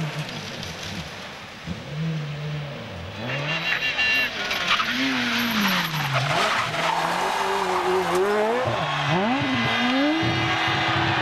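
A rally car engine revs hard, rising and falling as the car races past.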